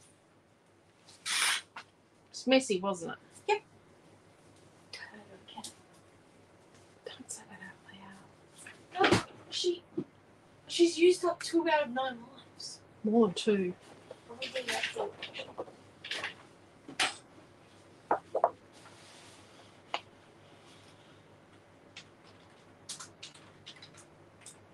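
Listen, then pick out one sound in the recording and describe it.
Paper rustles and slides as hands move cut-outs around.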